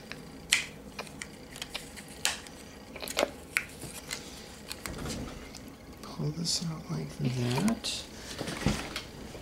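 Plastic packaging crinkles and clicks close by.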